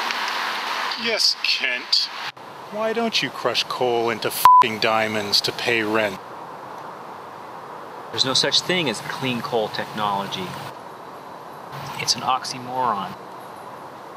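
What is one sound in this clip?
A man speaks calmly up close.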